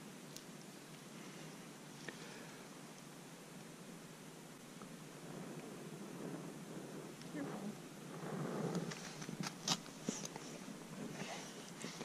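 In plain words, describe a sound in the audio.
A fire steel scrapes sharply.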